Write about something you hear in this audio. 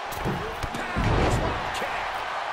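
A body slams onto a ring mat with a heavy thud.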